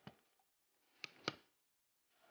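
A computer's power button clicks as it is pressed.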